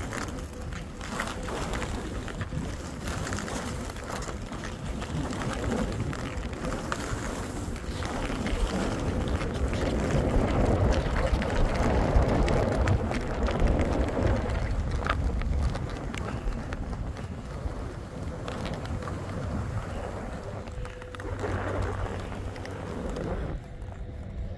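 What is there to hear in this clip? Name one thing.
Skis hiss and scrape over snow as a skier glides downhill.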